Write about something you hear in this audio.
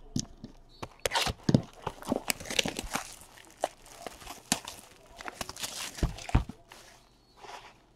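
Plastic wrapping crinkles and rustles as it is torn off a box.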